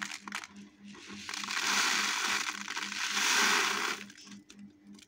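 Seeds pour and rustle into a paper cone.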